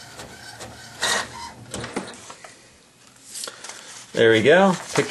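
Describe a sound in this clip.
Paper rustles as a printed sheet is pulled out.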